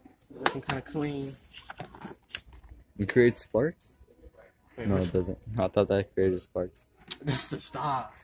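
A cardboard box scrapes and rattles as a hand pulls it off a shelf.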